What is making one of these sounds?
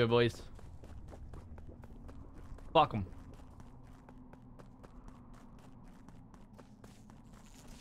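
Small footsteps patter quickly and evenly.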